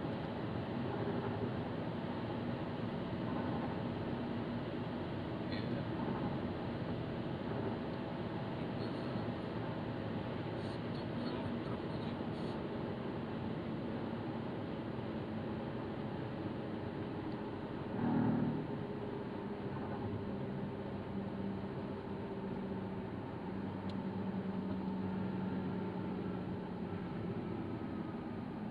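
A car's engine hums steadily as it drives along a road.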